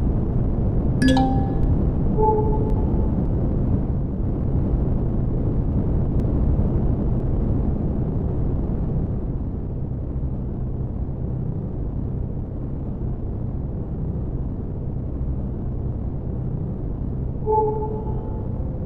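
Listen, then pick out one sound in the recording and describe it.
Short electronic beeps chime from the ship's controls.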